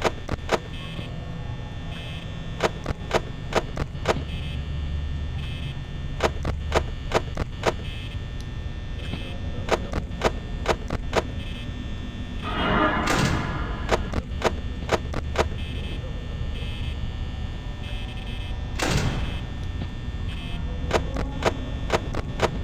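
A desk fan whirs steadily.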